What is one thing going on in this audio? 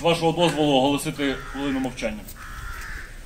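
A man speaks through a microphone and loudspeaker outdoors.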